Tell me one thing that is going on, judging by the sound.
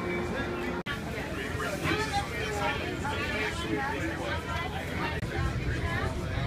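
Men and women chatter around the listener.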